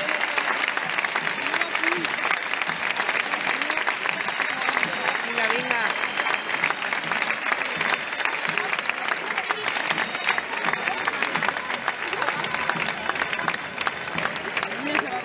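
A large crowd applauds in a big arena.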